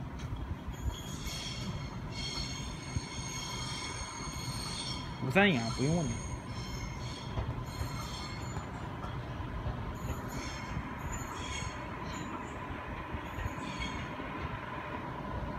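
Train brakes squeal shrilly.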